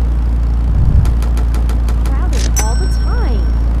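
Quick electronic ticks and chimes sound as a score counts up.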